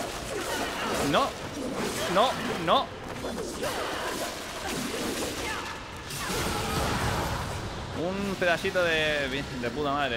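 Blades swish and strike in a fight.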